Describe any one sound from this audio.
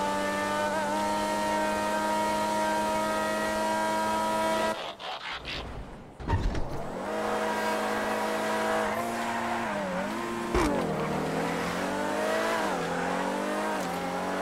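A sports car engine drones loudly at high speed, its pitch rising and falling as it shifts gears.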